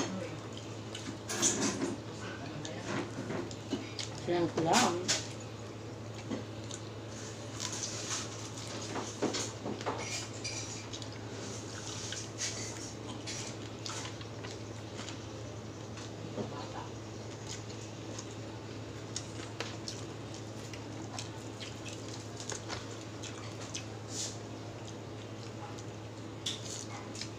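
Fingers squelch through sticky rice and crackle through crispy food.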